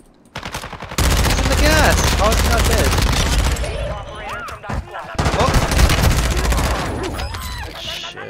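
A rifle fires rapid, loud bursts of shots.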